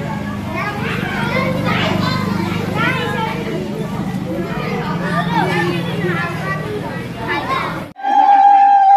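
Several women chatter nearby.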